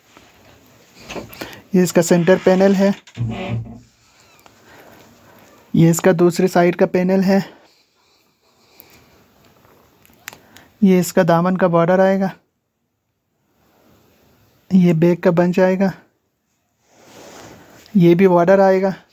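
Fabric rustles softly as hands spread and fold it.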